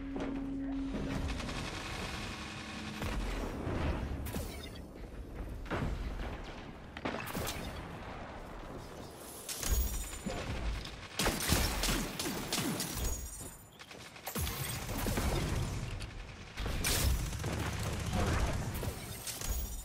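Gunshots crack loudly in repeated bursts.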